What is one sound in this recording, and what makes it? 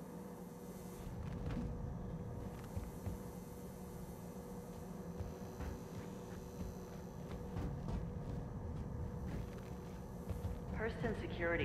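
Footsteps thud on a hard metal floor.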